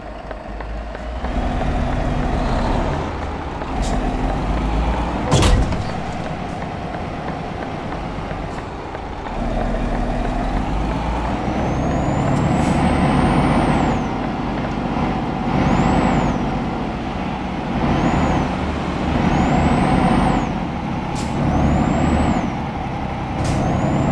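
A truck engine rumbles steadily as it drives, rising and falling in strength.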